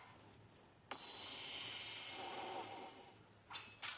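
A magical burst shimmers and hisses.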